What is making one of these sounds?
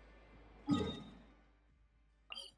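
A soft menu chime rings out as a panel opens.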